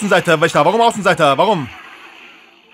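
A man speaks loudly and with animation into a microphone.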